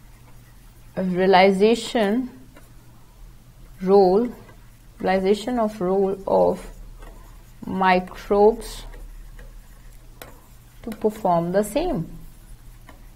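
A young woman speaks calmly and slowly in short phrases, close to a microphone.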